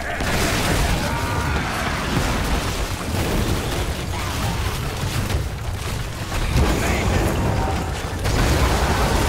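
Game battle effects crash and blast in a fast fight.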